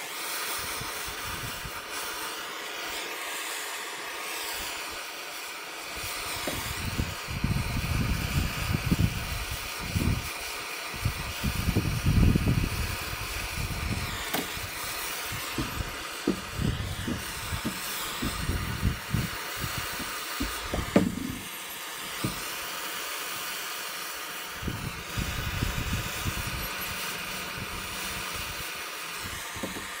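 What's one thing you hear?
A gas torch hisses steadily close by.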